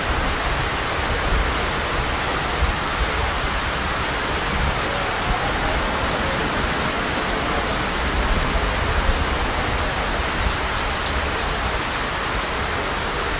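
Heavy rain pours down steadily and splashes on wet pavement.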